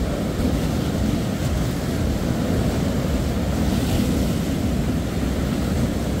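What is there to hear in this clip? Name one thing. Waves break and wash steadily onto a beach.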